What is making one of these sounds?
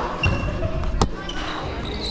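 A volleyball is struck with a sharp slap in a large echoing hall.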